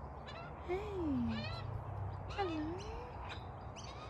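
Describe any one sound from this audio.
A dove coos softly.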